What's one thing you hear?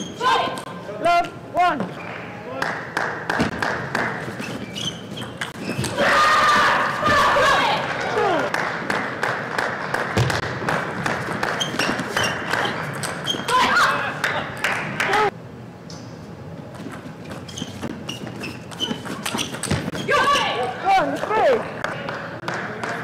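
Young women shout out loudly in bursts.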